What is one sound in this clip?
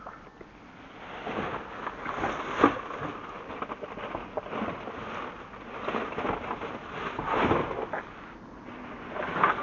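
A plastic bin bag rustles and crinkles close by.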